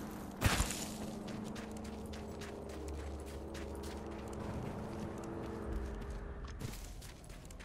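Footsteps crunch quickly over snow.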